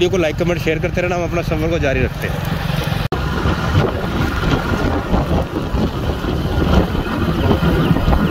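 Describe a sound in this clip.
Wind blows outdoors, rumbling against the microphone.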